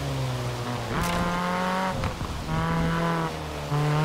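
Tyres squeal as a car slides through a bend.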